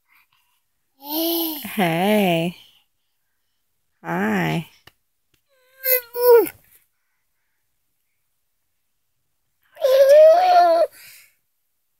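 A baby babbles and squeals close by in short bursts.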